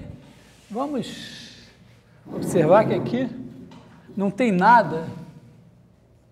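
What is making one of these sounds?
A man speaks with animation, like a lecturer addressing a room.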